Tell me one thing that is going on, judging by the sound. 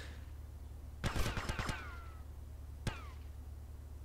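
A rifle fires single loud shots with a ringing echo.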